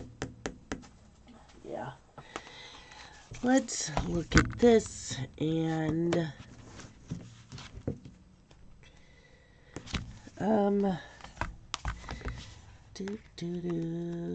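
Plastic-wrapped sticker packs are set down on paper with soft thuds.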